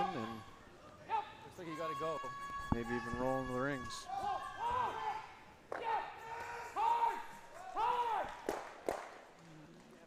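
Men shout loud, drawn-out calls in a large echoing hall.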